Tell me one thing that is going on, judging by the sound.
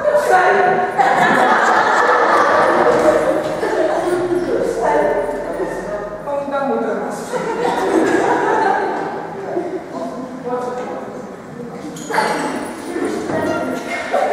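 A crowd of people chatters in a room.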